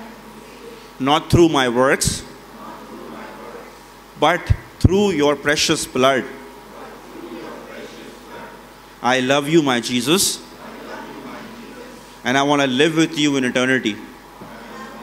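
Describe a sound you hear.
A man speaks slowly in short phrases through a microphone and loudspeakers, with pauses between them.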